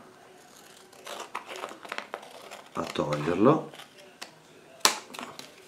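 Scissors snip through stiff card with crisp clicks.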